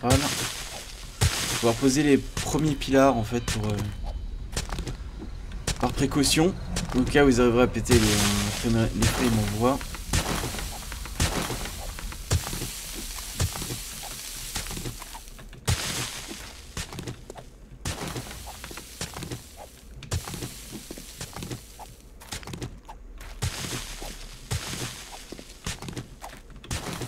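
A pickaxe strikes rock again and again.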